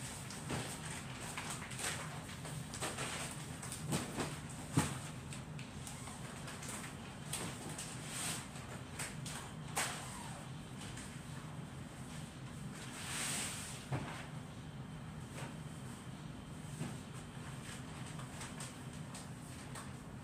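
Footsteps pad on a hard floor.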